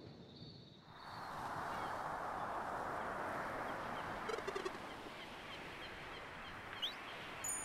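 Waves wash steadily against a raft at sea.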